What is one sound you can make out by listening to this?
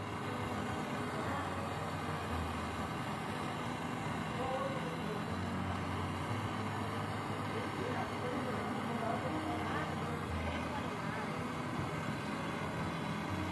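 A gas torch flame roars steadily.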